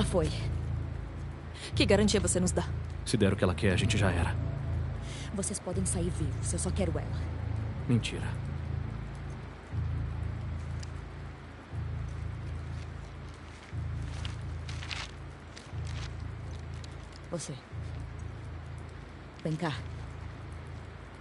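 A young woman speaks tensely and threateningly, close by.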